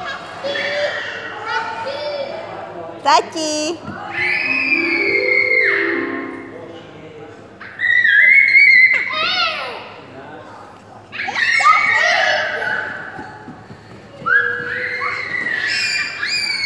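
Small children squeal and babble excitedly.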